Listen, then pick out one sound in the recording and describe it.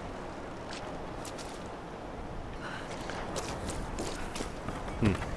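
Footsteps crunch on gravel and wooden boards.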